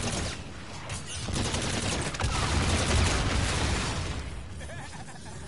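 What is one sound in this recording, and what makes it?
A swirling portal roars and whooshes as debris bursts apart.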